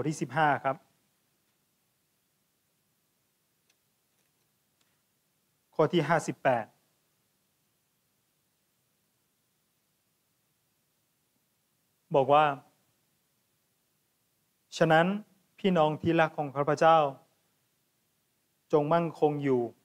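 A man speaks calmly into a microphone in short phrases with long pauses.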